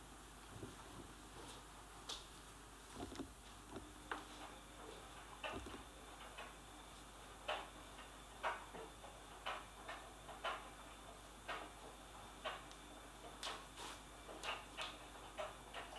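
A jacket's fabric rustles as it is handled.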